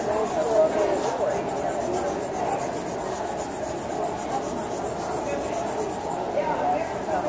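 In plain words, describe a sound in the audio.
Charcoal scratches and rubs on paper in quick strokes.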